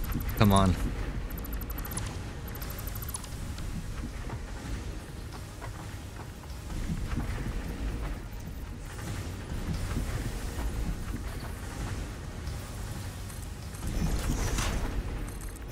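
Machinery hums and rumbles steadily.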